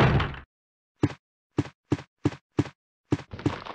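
Footsteps thud on a hard floor at a steady pace.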